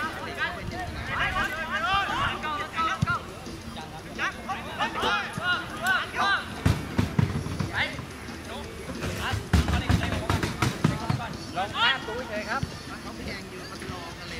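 Young men shout to each other across an open field.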